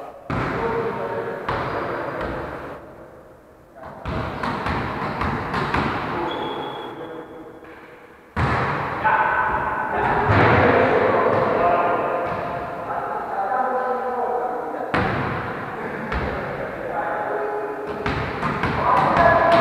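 A volleyball is struck by hands.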